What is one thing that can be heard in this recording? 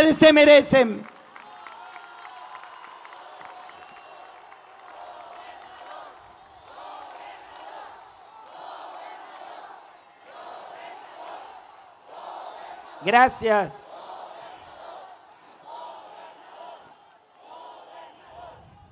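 A large crowd cheers and chants.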